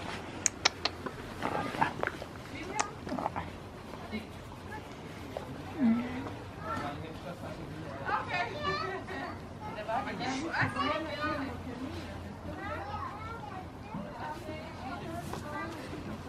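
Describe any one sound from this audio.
A hand rubs and scratches a goat's fur softly.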